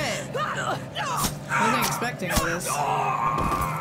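Heavy blows thud and clatter during a fight.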